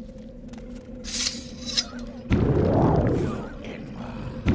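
A magic spell crackles and shimmers.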